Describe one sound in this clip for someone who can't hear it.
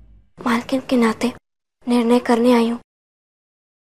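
A young woman speaks close by in a pleading, upset voice.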